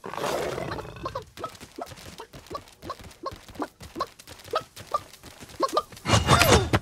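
Hooves clatter on the ground as a mount gallops.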